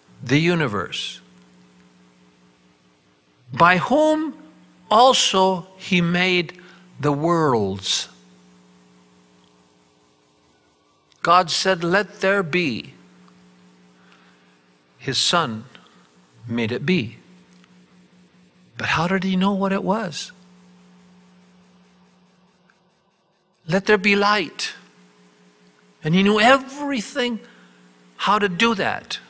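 An elderly man speaks with animation through a microphone, in bursts with pauses, his voice echoing in a hall.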